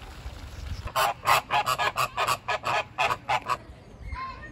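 Flamingos honk and chatter close by.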